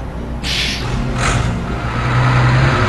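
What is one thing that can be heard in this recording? A bus engine grows louder as the bus pulls away.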